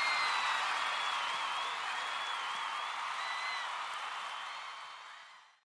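A crowd cheers and screams loudly in a large echoing hall.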